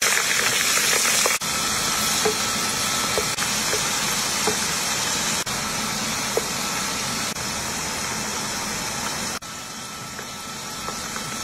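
Oil sizzles and bubbles steadily in a pan.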